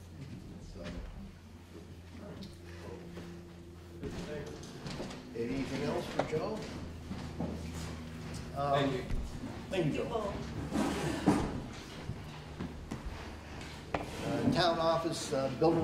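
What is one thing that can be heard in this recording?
A middle-aged man speaks with animation in an echoing hall.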